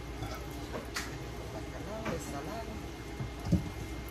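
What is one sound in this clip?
Boiled pasta tips from a metal colander into a pot.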